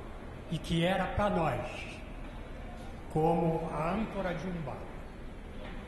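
An elderly man speaks into a microphone in short, emphatic phrases.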